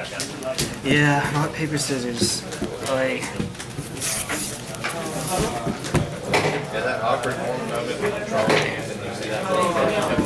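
Playing cards slide and tap on a table mat.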